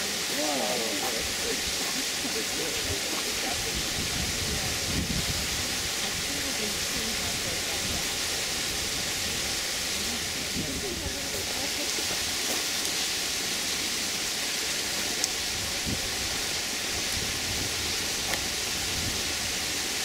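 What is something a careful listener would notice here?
Water splashes softly as a heron handles a fish in the shallows.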